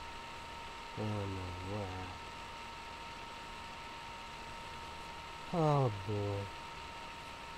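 A young man speaks casually in short bursts close to a microphone.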